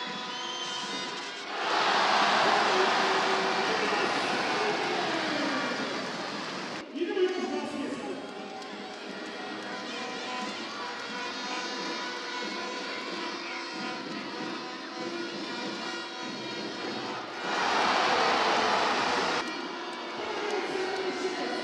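A large crowd cheers loudly in an echoing arena.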